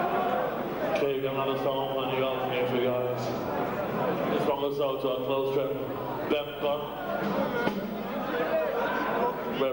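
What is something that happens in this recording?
Electric guitars play loudly.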